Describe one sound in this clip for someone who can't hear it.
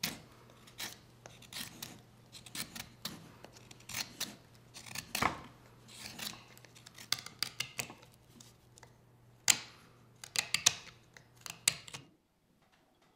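A knife shaves wood in short, scraping strokes.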